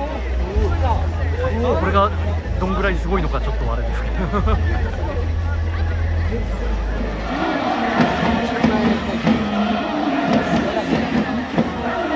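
A large crowd chants and cheers far off in the open air.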